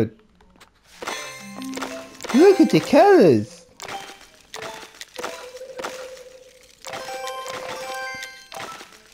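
Bright chimes and sparkling tinkles ring out as jewels burst in a puzzle game.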